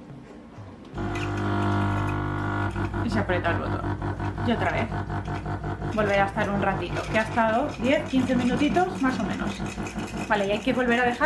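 A coffee machine's pump hums and buzzes steadily.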